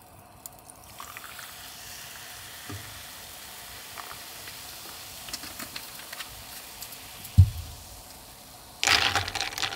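Soda pours into a glass and fizzes steadily.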